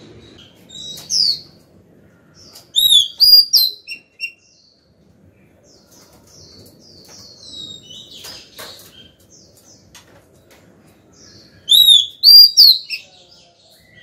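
A caged songbird sings loud, clear whistling phrases close by.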